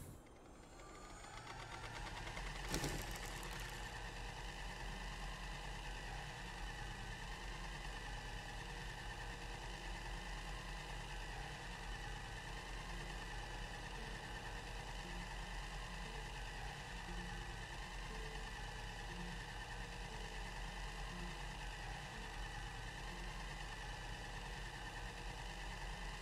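A machine hums steadily and softly.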